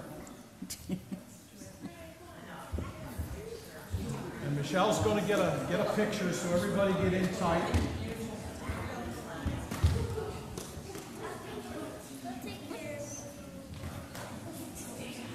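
An elderly man speaks calmly over a microphone in a large echoing hall.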